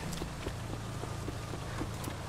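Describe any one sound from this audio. Footsteps run on wet pavement.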